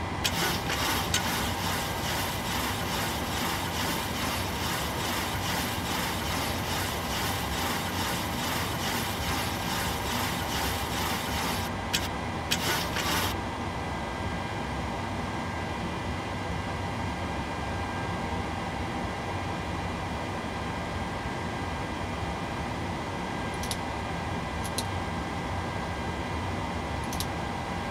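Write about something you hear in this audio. A steady low hum of aircraft systems drones on.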